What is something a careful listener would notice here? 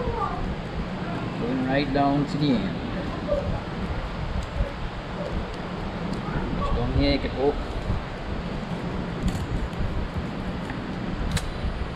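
A knife scrapes and cuts through a fish.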